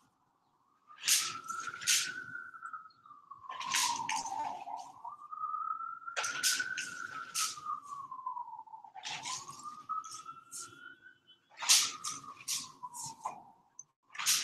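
A spray gun hisses in short bursts.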